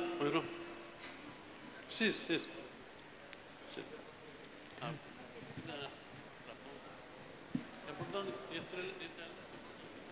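A man speaks through a microphone in a large hall, with a faint echo.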